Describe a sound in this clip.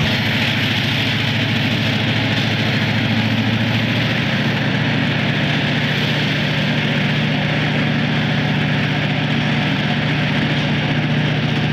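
Diesel locomotives rumble and throb steadily close by as a freight train passes.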